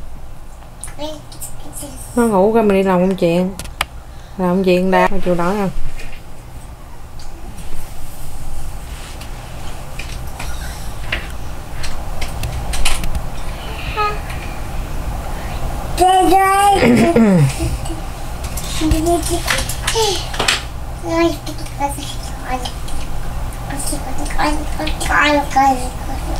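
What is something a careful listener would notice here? A toddler babbles and coos up close, in bursts.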